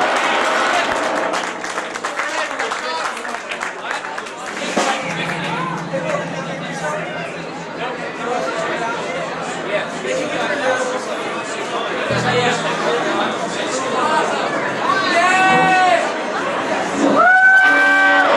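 An electric guitar is strummed.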